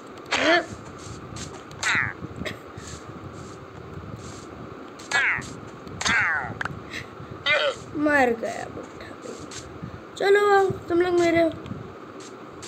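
A young boy talks with animation into a nearby microphone.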